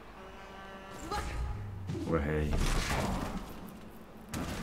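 Heavy blows land in a scuffle with thuds and crashes.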